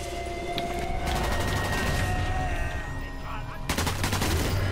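A Thompson submachine gun fires in rapid bursts.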